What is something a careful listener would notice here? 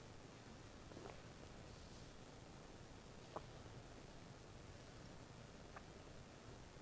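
A metal cup clinks softly against a metal plate.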